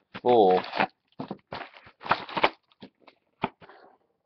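Small plastic pieces click and tap as they are handled.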